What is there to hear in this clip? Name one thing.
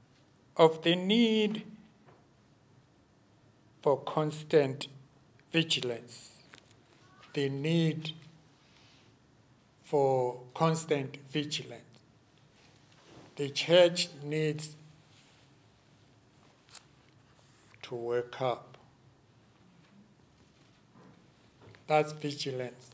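An older man speaks slowly and calmly into a microphone, with long pauses.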